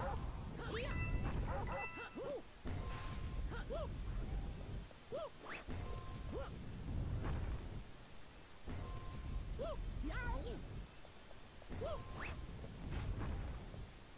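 Short springy jump sounds chirp again and again.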